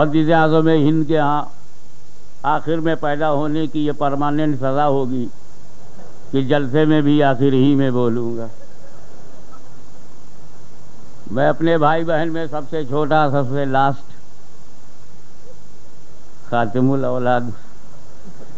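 An elderly man speaks with animation into a microphone, heard through loudspeakers with pauses between phrases.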